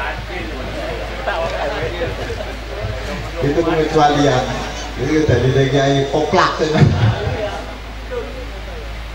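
A man speaks with animation into a microphone, heard through a loudspeaker.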